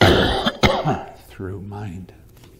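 An elderly man coughs close to a microphone.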